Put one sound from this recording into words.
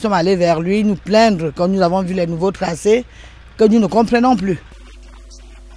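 A middle-aged woman speaks with feeling close to a microphone.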